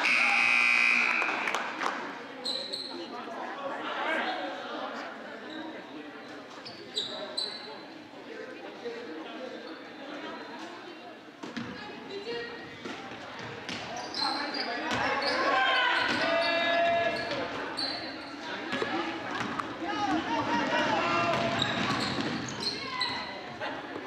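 A crowd cheers and shouts in an echoing gym.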